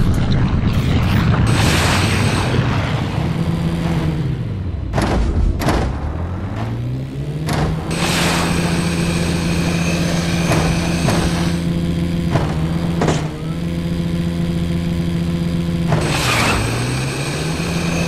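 A hovering bike's engine hums steadily, rising and falling in pitch.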